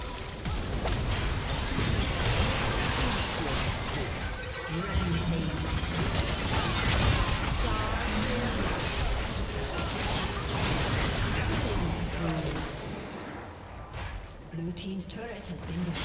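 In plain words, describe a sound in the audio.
Magic spells whoosh and blast in a hectic fight.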